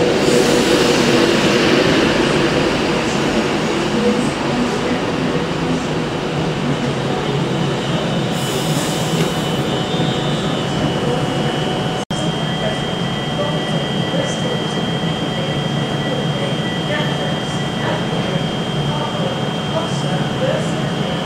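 A train's engine hums steadily.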